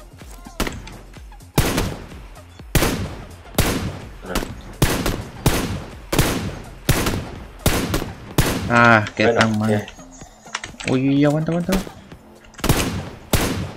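A rifle fires shot after shot, each crack echoing away.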